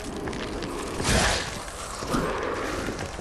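A sword strikes with a heavy thud.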